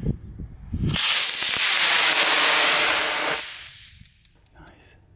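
A rocket launches with a loud, rushing roar that fades as it climbs away.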